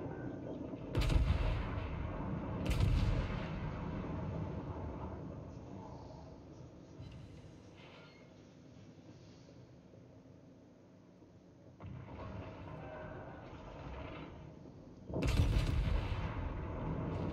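Heavy naval guns fire with deep booming blasts.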